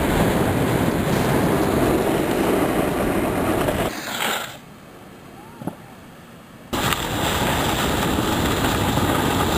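A snowboard scrapes and hisses over snow.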